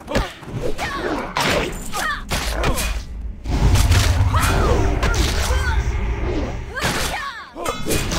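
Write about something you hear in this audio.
A fiery spell crackles and roars.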